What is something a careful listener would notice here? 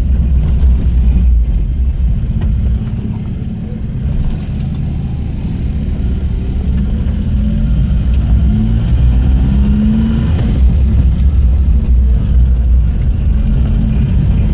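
A vehicle engine rumbles steadily close by.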